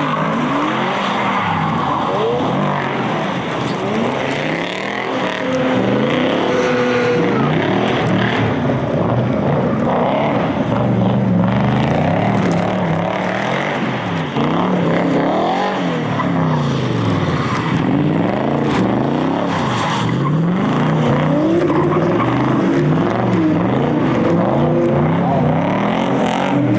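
Car engines rev hard and bounce off the rev limiter.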